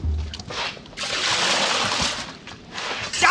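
Water splashes out of a wooden bucket.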